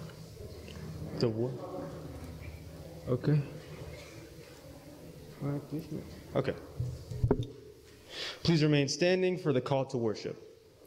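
A young man reads aloud calmly into a microphone in a large echoing room.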